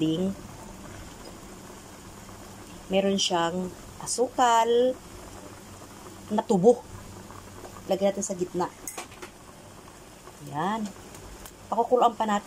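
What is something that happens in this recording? Liquid bubbles and simmers steadily in a pan.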